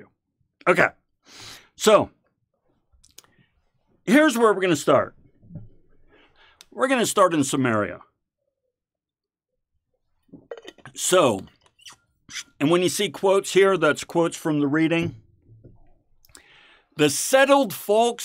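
A middle-aged man speaks with animation into a close microphone, in bursts with pauses.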